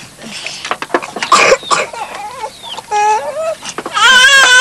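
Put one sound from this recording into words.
A young woman laughs softly nearby.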